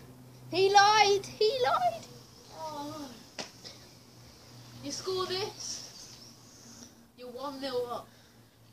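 A child talks loudly and with animation close by.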